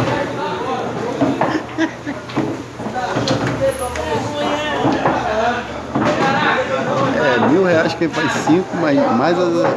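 Several men talk with animation nearby.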